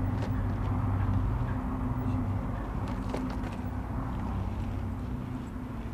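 Loose gravel crunches and rattles under a person's movements.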